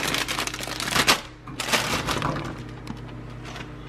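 Pea pods tumble and clatter into a pan.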